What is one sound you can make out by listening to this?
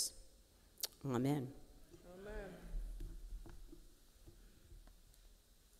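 An elderly man speaks into a microphone in a large echoing hall.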